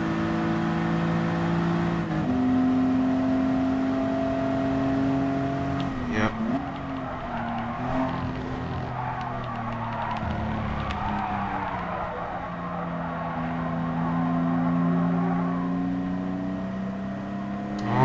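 A racing car engine roars, shifting gears and changing pitch as it speeds up and slows down.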